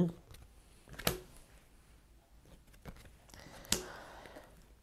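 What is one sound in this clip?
Playing cards slap and rustle as they are handled.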